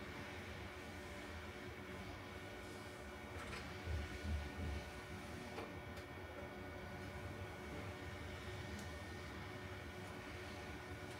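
Cables rustle and clack as a man handles them.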